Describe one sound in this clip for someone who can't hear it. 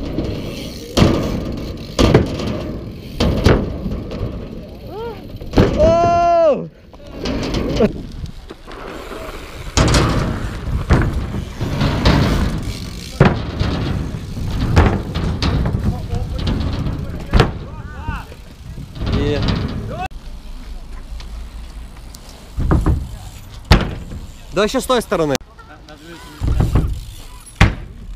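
A bike lands on concrete with sharp knocks.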